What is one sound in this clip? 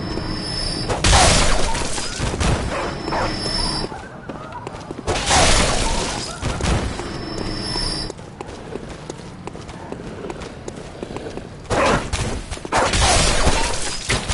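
Blades slash and strike with heavy thuds in a fight.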